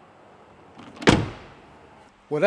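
A car door thuds.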